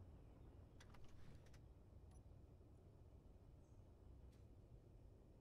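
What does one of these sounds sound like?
Soft interface clicks sound a few times.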